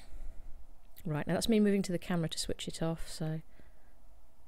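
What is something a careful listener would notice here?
A woman speaks calmly and close to the microphone.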